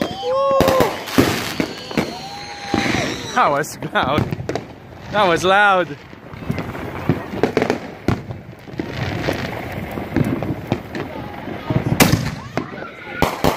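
Fireworks crackle and pop outdoors.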